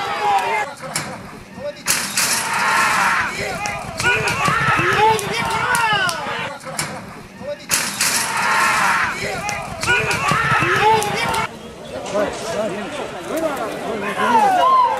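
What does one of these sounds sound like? A crowd of men shouts and cheers excitedly outdoors.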